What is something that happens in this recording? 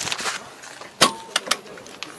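A tractor cab door latch clicks open.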